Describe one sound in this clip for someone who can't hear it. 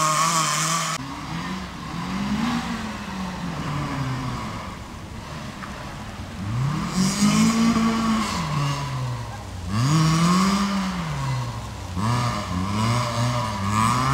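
A car's engine revs up and down as it spins and slides on gravel close by.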